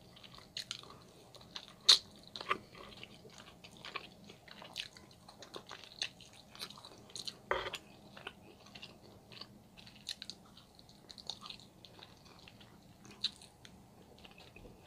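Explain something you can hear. A woman chews and bites into food close to a microphone, with wet smacking sounds.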